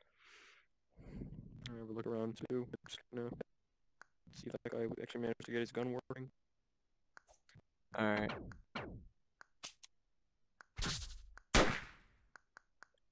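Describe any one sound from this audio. Short electronic sound effects play in bursts.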